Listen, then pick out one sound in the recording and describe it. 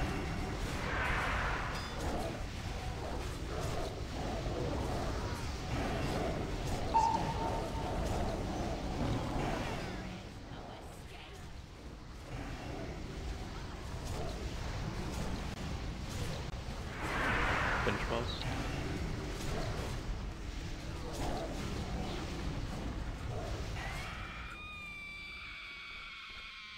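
Game spell effects crackle and boom.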